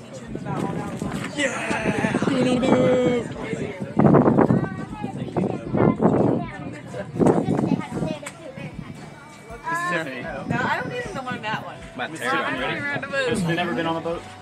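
A crowd of teenagers chatters and talks nearby.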